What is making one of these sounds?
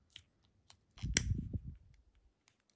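Fingers rustle and tap on a plastic cable plug.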